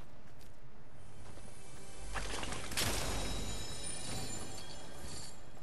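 A treasure chest hums with a shimmering, ringing tone.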